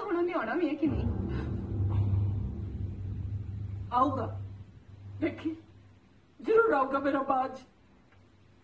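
An elderly woman speaks sorrowfully, close by.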